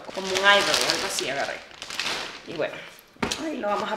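A plastic bag crinkles loudly.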